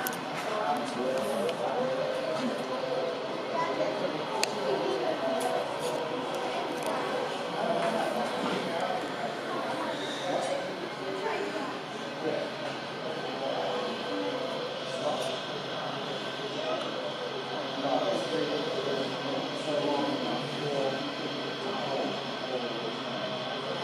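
A model train rolls along its track with a soft, steady rattle.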